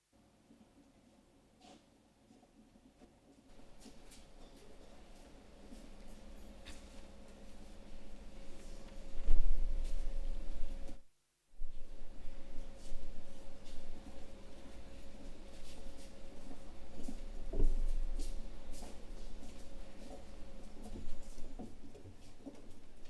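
Footsteps shuffle across a wooden stage.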